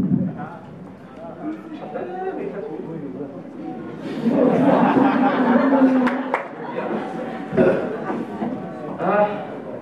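A young woman speaks calmly into a microphone over loudspeakers.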